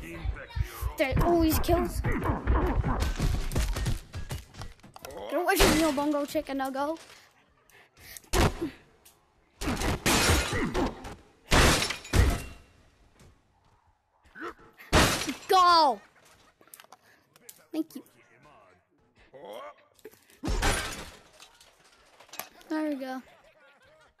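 Men grunt and groan in pain.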